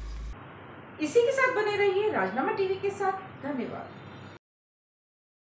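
A young woman speaks calmly and clearly into a microphone, like a news reader.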